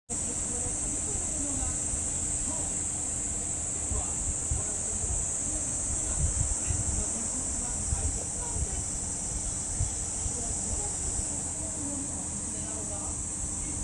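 An electric fan whirs steadily nearby.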